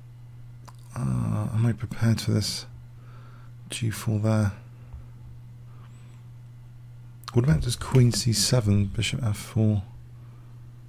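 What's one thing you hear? A man talks into a close microphone, with animation, in short bursts.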